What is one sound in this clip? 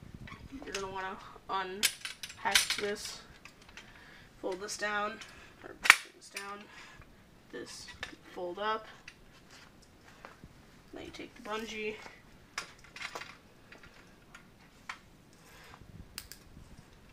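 A metal hand trolley clicks and rattles as it is unfolded.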